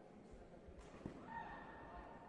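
A taekwondo kick thuds against a padded body protector.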